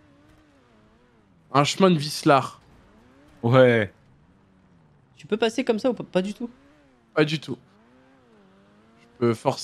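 A sports car engine hums and revs up and down.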